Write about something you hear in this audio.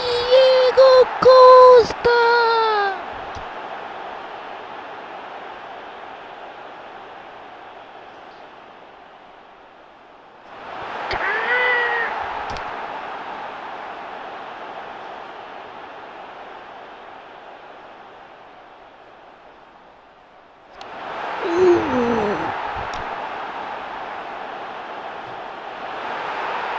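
A large stadium crowd murmurs and roars, surging into loud cheers in bursts.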